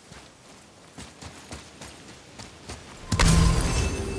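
Heavy footsteps crunch on gravel.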